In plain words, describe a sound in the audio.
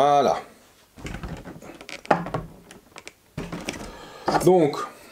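Plastic packaging rustles and knocks as a man handles boxes.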